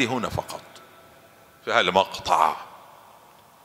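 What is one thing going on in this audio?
A man speaks with feeling into a microphone, in a reverberant hall.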